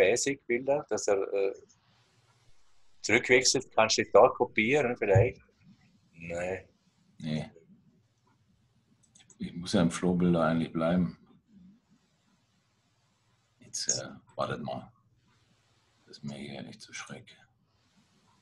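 A man talks calmly over an online call.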